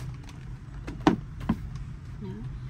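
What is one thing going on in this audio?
A shoe is set down on a wooden table with a soft knock.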